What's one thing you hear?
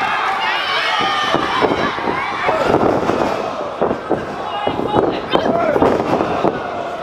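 Bodies slap and thud hard onto a wrestling mat.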